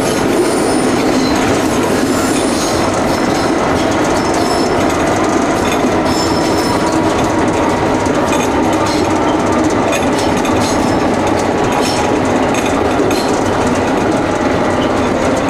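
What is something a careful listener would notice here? A tram rumbles and rattles steadily along its rails.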